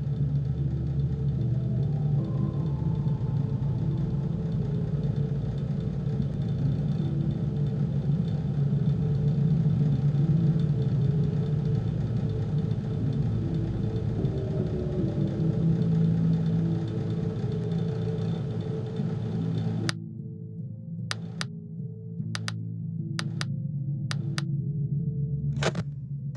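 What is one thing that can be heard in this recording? An electric fan whirs with a steady low hum.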